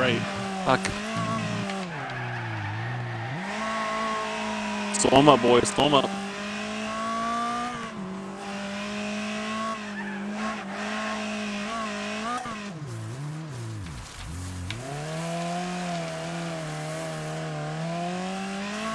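A racing car engine roars, revving up and down as it shifts gears.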